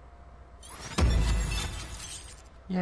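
A deep electronic chime sounds as a result pops up.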